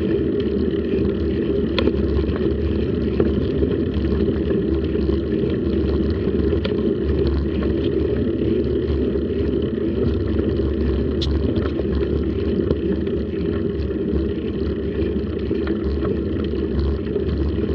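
Bicycle tyres rumble over rough pavement.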